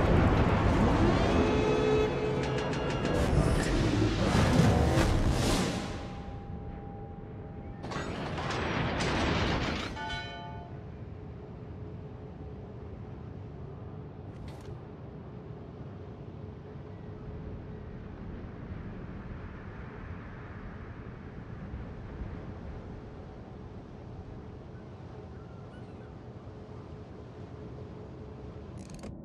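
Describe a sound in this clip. Water rushes along a ship's hull.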